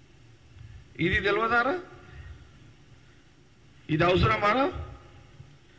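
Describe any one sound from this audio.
A middle-aged man speaks forcefully into a microphone in short bursts.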